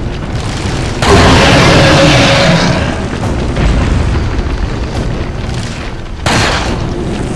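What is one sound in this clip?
A handgun fires loud single shots.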